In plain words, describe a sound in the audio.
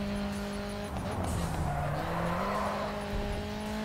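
Tyres screech as a car slides through a corner.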